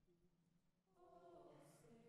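A choir starts singing together in a large hall.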